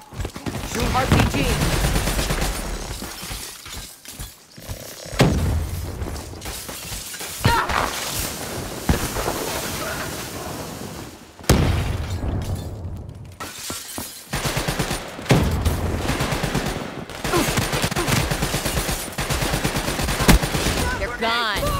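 An automatic rifle fires in bursts in a video game.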